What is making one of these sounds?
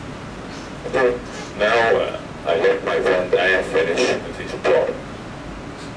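A young woman speaks with animation through a microphone in a large room.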